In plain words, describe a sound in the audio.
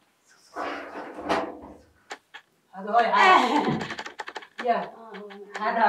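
A woman laughs and talks, close by.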